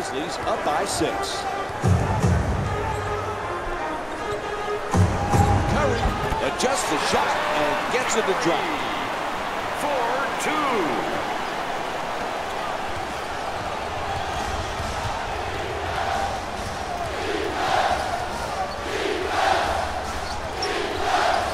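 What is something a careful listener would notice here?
A large indoor crowd murmurs and cheers steadily in an echoing arena.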